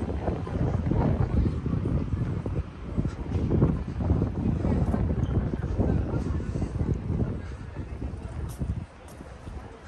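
Wind gusts and rumbles outdoors.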